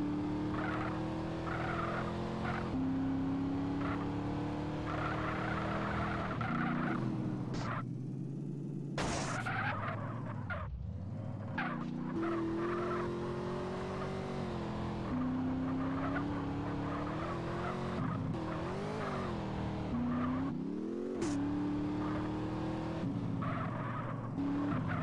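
A car engine revs hard, its pitch climbing and dropping with each gear change.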